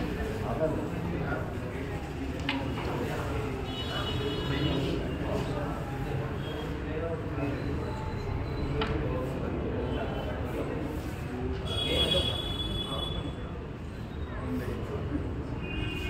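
Several men murmur and chat nearby.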